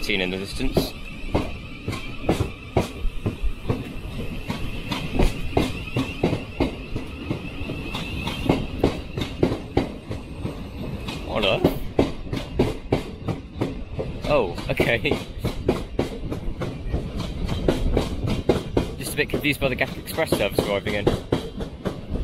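Train wheels squeal on the track now and then.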